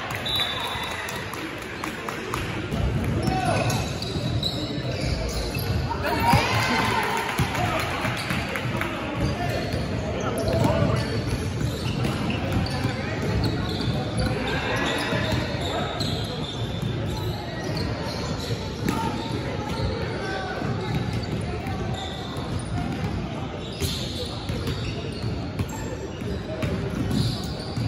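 Sneakers squeak and thud on a hardwood court in an echoing gym.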